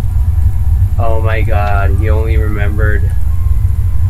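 A young man speaks into a close microphone with animation.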